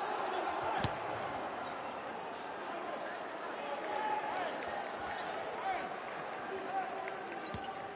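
A large indoor crowd murmurs and cheers steadily in an echoing arena.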